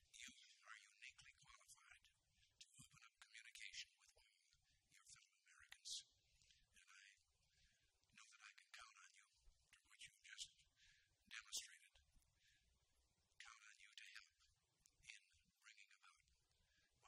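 An elderly man speaks calmly and deliberately into a microphone.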